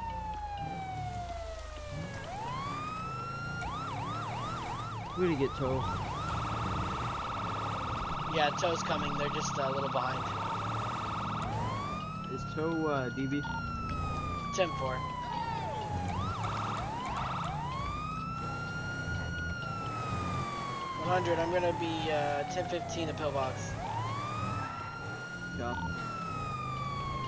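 A police siren wails, rising and falling, with fast yelping bursts.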